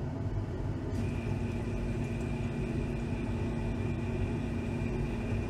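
Liquid pours steadily into a glass container.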